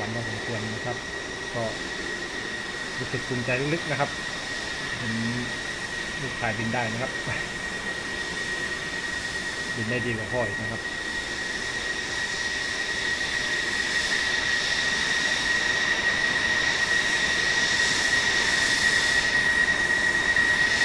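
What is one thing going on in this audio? A jet engine whines steadily and grows louder as the jet taxis closer.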